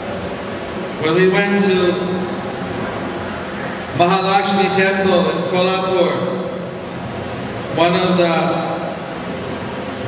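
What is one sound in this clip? A middle-aged man sings short drawn-out phrases into a microphone, with pauses between them.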